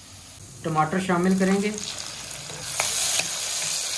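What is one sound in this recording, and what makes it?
Chopped tomatoes tumble into a sizzling pan.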